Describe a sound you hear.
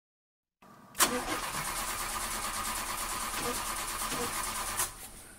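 A van engine idles steadily.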